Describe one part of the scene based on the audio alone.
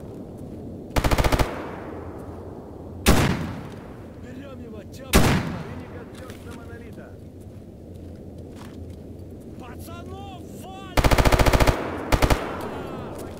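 A rifle fires loudly, in rapid bursts and single shots.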